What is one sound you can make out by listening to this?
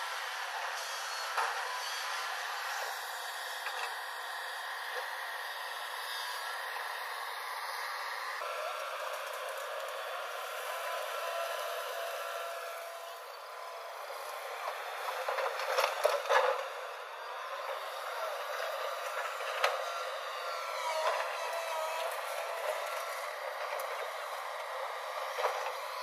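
An excavator engine rumbles steadily outdoors.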